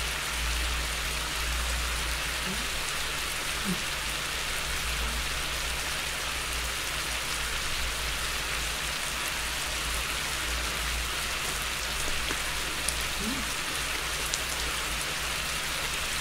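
Meat sizzles steadily on a hot grill.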